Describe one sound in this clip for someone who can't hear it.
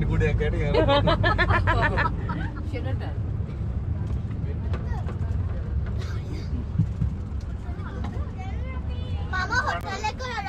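A van engine rumbles steadily while driving.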